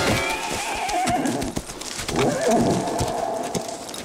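A horse gallops away over soft ground.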